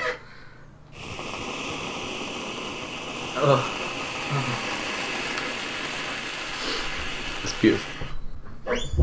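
A spray can hisses steadily.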